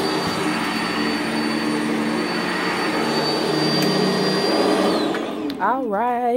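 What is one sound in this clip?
A vacuum cleaner roars loudly over carpet, then switches off and winds down.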